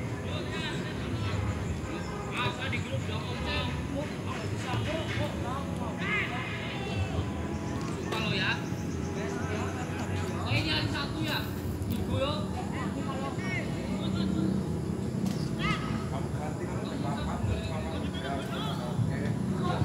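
Young players shout to each other in the distance outdoors.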